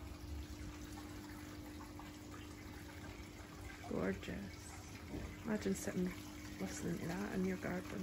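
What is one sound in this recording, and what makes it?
Water trickles softly down a wall fountain.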